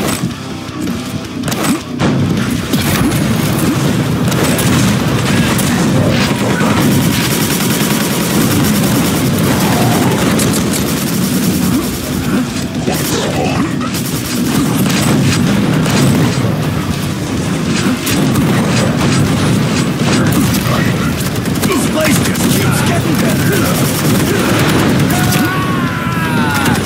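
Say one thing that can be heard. Heavy guns fire again and again, with sharp blasts and explosions.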